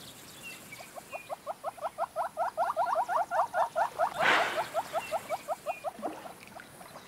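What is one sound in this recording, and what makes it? A large bird calls in a fast run of hollow, rhythmic clucks.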